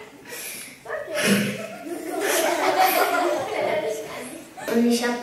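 A girl laughs loudly close to a microphone.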